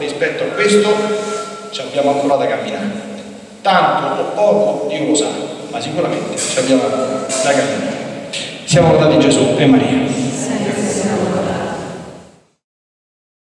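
A middle-aged man speaks calmly into a microphone in a large echoing space.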